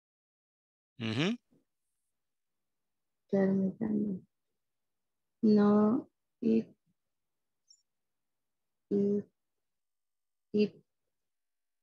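A woman speaks in short, slow phrases over an online call.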